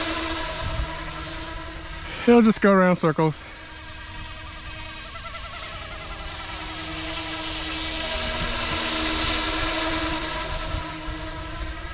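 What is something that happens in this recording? A helicopter's rotor whirs steadily overhead.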